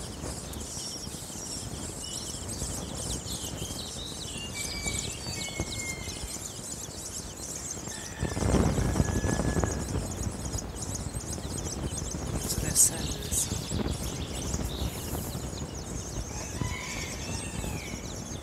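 A hen clucks softly.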